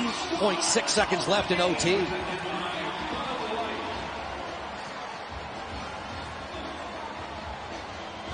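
A large crowd roars in a big echoing arena.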